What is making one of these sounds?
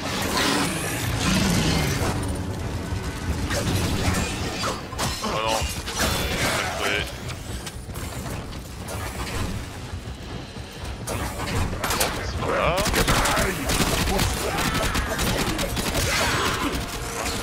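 Blades slash and clang against enemies in quick bursts.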